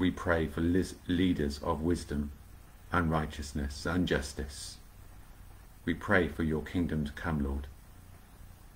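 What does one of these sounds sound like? A middle-aged man speaks calmly and slowly close to a microphone, as on an online call.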